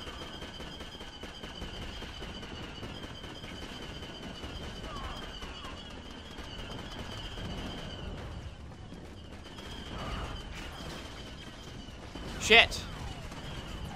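Blaster guns fire in rapid bursts.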